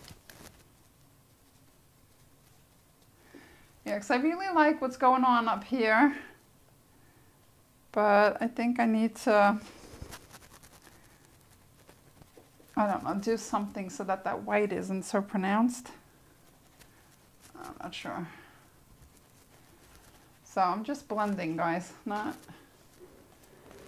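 Fingers rub and smear paint on paper with a soft rustle.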